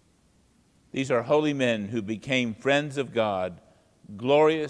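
A middle-aged man speaks calmly and clearly into a microphone, reading out.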